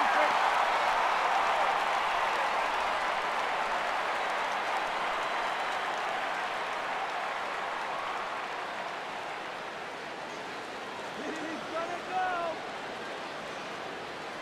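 A large crowd cheers and murmurs in a big open stadium, slowly fading.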